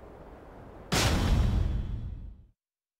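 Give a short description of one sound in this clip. A loud burst of shattering glass rushes past.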